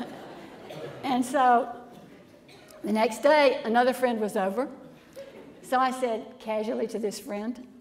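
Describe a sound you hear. A woman speaks calmly into a microphone in a large echoing hall.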